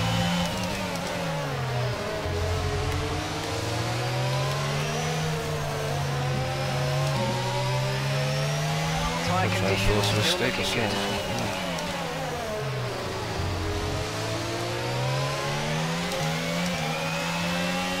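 A racing car engine whines loudly, rising and falling in pitch as it shifts gears.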